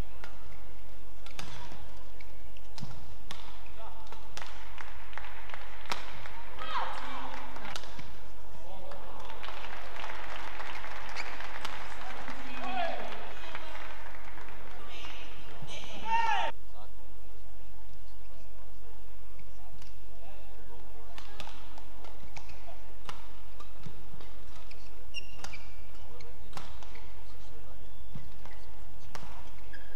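Shuttlecocks are struck sharply with rackets, again and again.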